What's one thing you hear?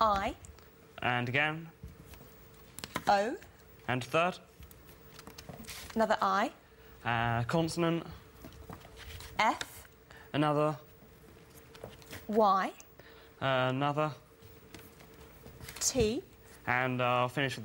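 A woman speaks short words clearly, with pauses between them.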